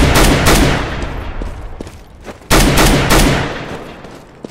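A rifle fires loud shots that echo.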